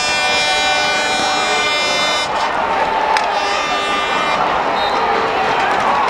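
A large crowd roars and cheers throughout.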